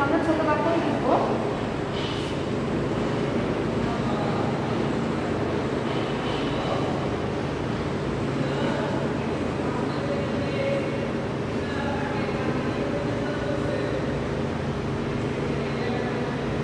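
A woman speaks calmly, as if teaching.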